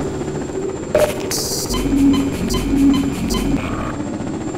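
A wall charger buzzes briefly as it gives health.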